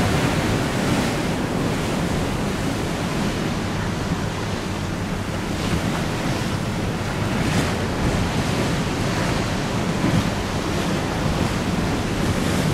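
Choppy water splashes and laps against a boat's hull.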